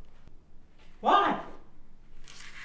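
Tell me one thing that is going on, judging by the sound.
A young woman asks a question.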